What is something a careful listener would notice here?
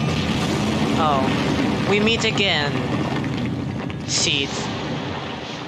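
A dragon-like creature roars and shrieks.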